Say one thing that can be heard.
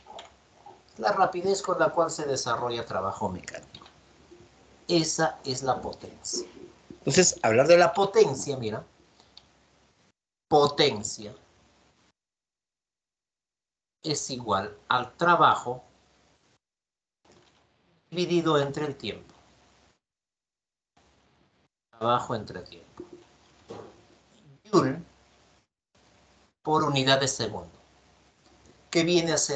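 A man speaks calmly into a microphone over an online call, explaining in pauses.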